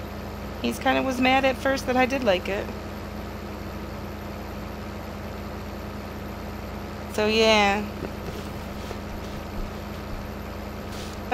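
A combine harvester engine hums steadily.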